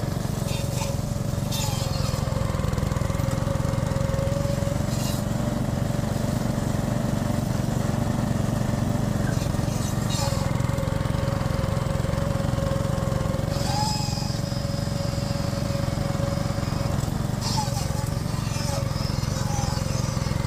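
Dry bean stalks rustle and crackle as a machine cuts through them.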